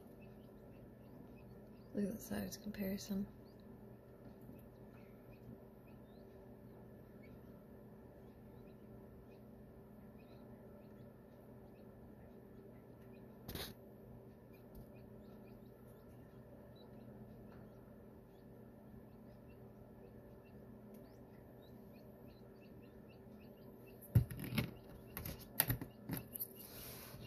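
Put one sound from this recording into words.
A newly hatched chick peeps softly.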